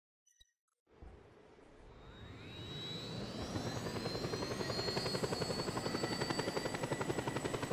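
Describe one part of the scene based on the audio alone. A helicopter's engine whines as it starts up, rising in pitch.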